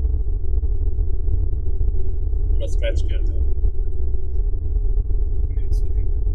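A car engine hums steadily with low road rumble, heard from inside the car.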